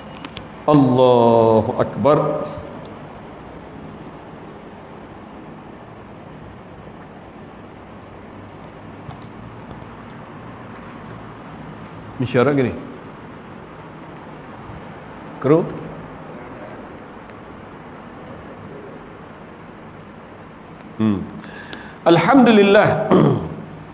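A middle-aged man speaks calmly into a microphone, in short bursts with long pauses.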